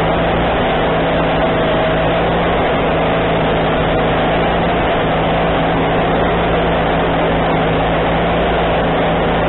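A sawmill engine runs with a loud, steady drone.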